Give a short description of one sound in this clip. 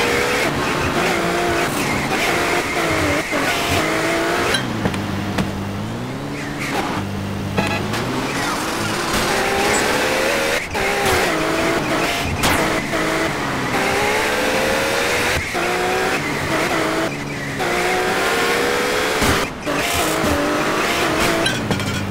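A car engine revs up and down.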